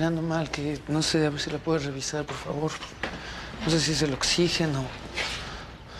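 A young man speaks with animation nearby.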